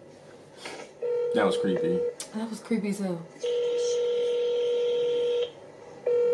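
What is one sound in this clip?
A phone sounds a steady beeping tone.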